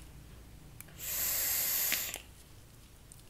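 A person blows out a long, hissing breath.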